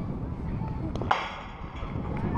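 A metal bat cracks sharply against a ball.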